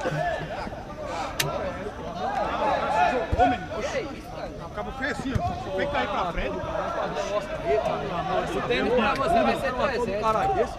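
Young men shout and call to each other across an outdoor pitch.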